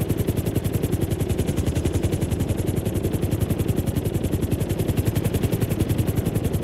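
A helicopter's rotor chops loudly and steadily.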